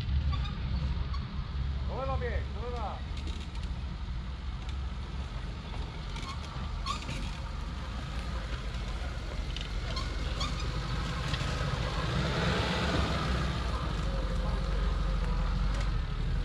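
An off-road vehicle's engine rumbles as it drives closer over rough ground.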